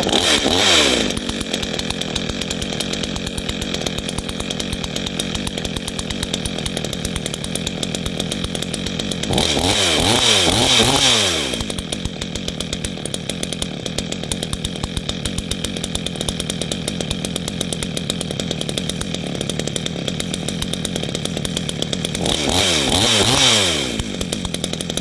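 A 62cc two-stroke chainsaw revs up in short bursts and falls back to idle.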